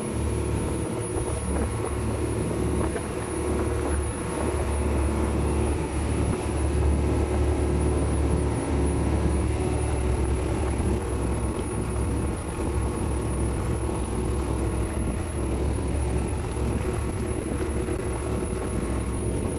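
Water splashes and rushes loudly along a boat's hull.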